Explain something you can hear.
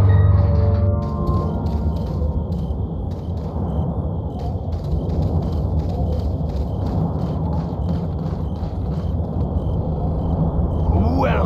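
Footsteps thud steadily on hard ground and wooden stairs.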